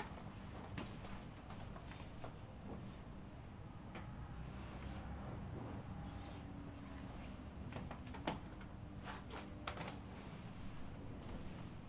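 A cloth sheet rustles and flaps as it is unfolded and spread out.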